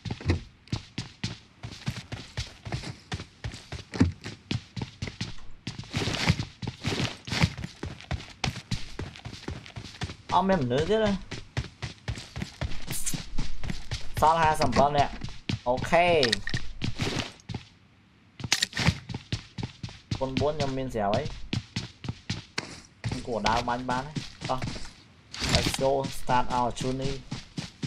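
Footsteps thud quickly in a game.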